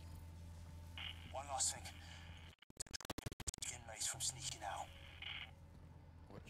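A man talks calmly into a close microphone.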